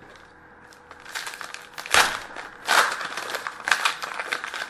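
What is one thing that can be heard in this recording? Card packs rustle and crinkle in someone's hands.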